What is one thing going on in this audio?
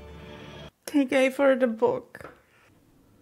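A woman laughs into her hand close by.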